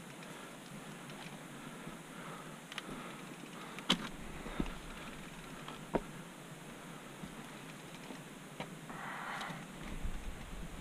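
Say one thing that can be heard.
A mountain bike rattles and clunks over rocks and roots on a dirt trail.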